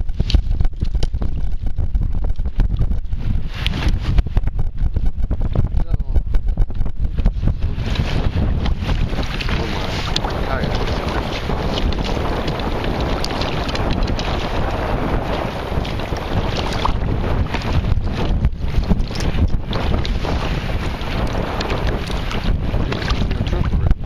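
Wind blows and rumbles across the open water.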